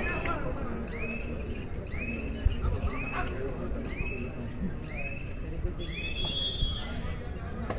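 A young man chants one word over and over in a quick, steady rhythm.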